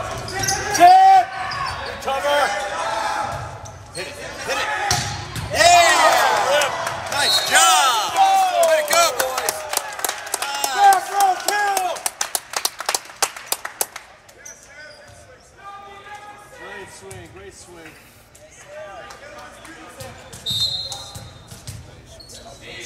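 Young players shout and call to each other in a large echoing gym.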